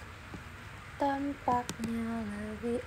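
A young woman speaks briefly and playfully, close by.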